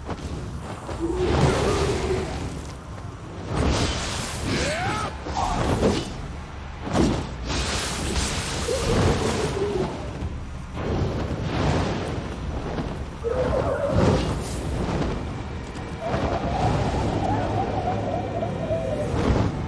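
A giant monster screeches and roars.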